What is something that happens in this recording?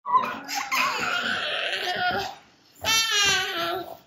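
A young child shouts playfully.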